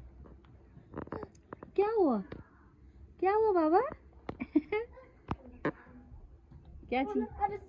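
A toddler babbles and squeals close by in a high, sing-song voice.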